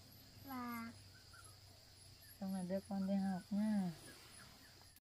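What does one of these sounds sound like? A woman speaks softly close by.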